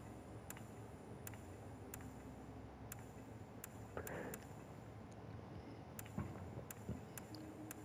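Short, soft interface clicks tick now and then as options change.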